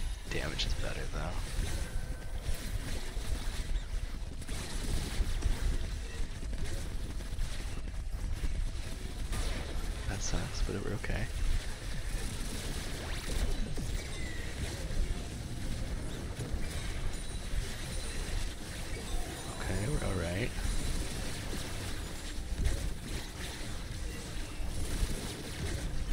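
Game spell effects whoosh, zap and crackle in quick bursts throughout a battle.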